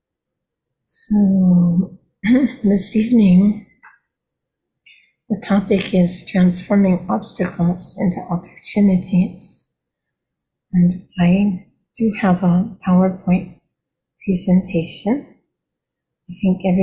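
An elderly woman speaks calmly and warmly through an online call.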